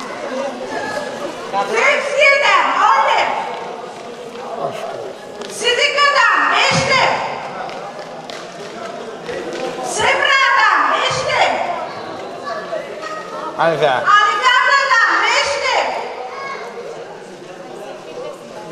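Several women chatter nearby.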